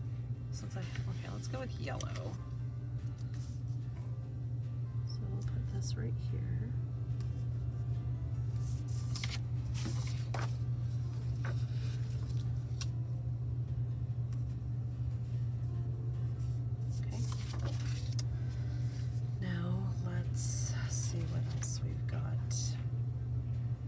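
Paper sheets rustle and slide as hands move them.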